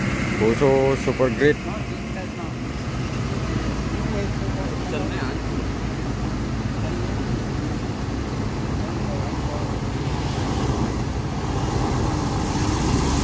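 A heavy truck engine rumbles nearby, growing louder as it approaches.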